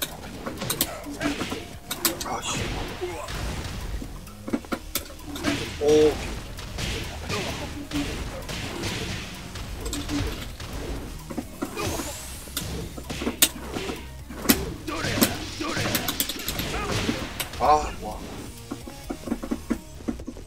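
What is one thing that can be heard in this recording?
Punches and kicks land with sharp smacks.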